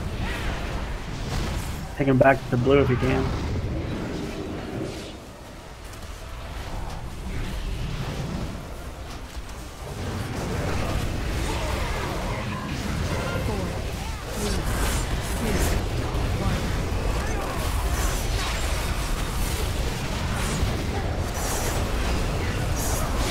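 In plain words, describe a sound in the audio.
Magic spells crackle and blows clash in a busy battle.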